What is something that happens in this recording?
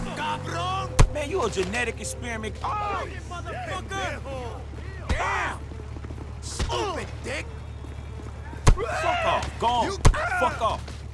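Fists land hard blows with sharp thuds.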